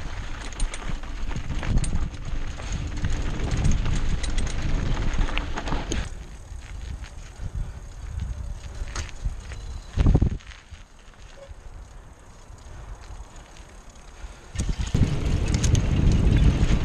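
Mountain bike tyres crunch over a dirt trail.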